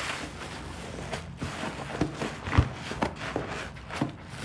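Hands squelch through thick wet soap suds.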